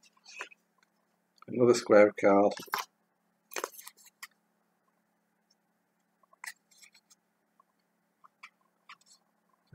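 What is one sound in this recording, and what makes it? Paper rustles as a man unwraps a small packet.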